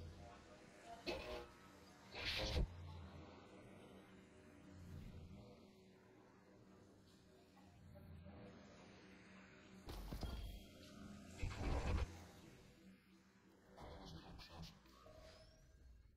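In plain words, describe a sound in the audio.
Soft electronic whooshes and clicks sound as game menus open and close.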